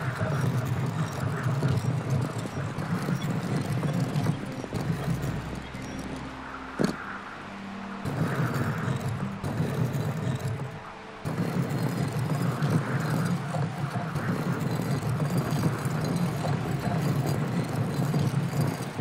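Heavy stone rings grind and scrape as they turn.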